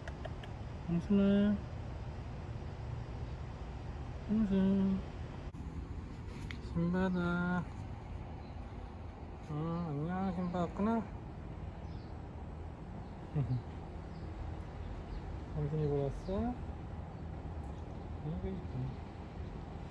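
A cat meows repeatedly nearby.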